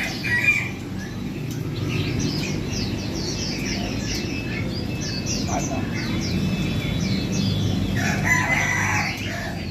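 A man whistles short bird calls close by.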